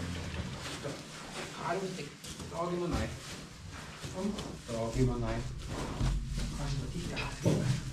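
A calf's hooves rustle through straw.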